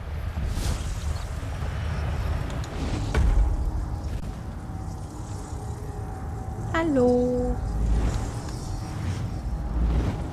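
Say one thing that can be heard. A magical portal hums with a deep, steady rumble.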